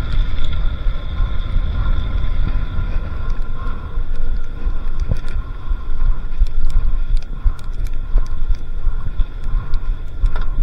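Wind rushes and buffets loudly over the microphone.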